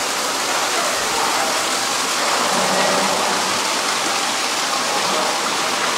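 Water trickles steadily from a small waterfall into a pool.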